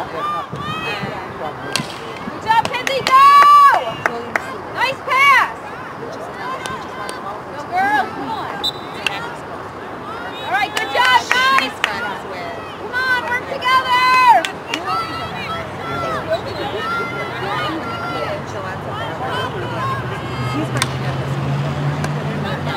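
A hockey stick strikes a ball with a sharp clack.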